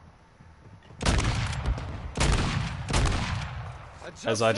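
A rifle fires rapid loud shots.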